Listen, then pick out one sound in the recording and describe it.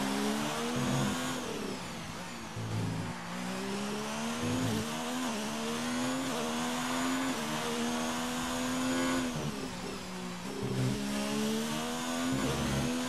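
A racing car engine roars at high revs, rising in pitch and dropping sharply with each gear change.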